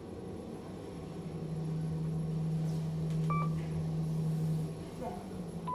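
A lift motor hums steadily as the car moves.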